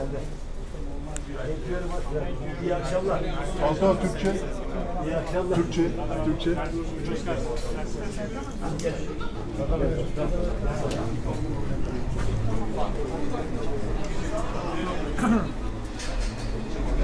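A crowd of men chatter all around, close by, in an echoing hall.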